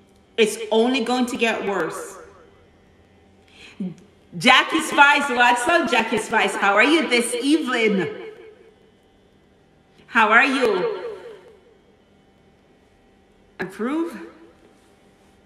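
A woman sings into a microphone up close, with pauses between phrases.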